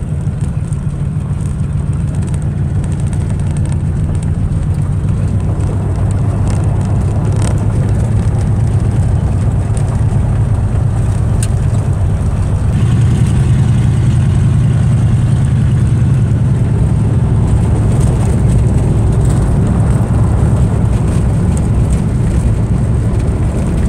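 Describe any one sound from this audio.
Tyres crunch and rattle on a gravel road.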